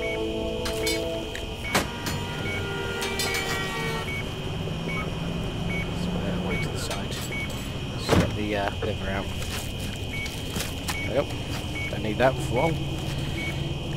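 A heart monitor beeps at a steady pace.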